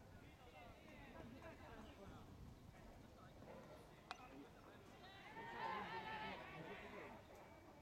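Young players shout to each other across an open field in the distance.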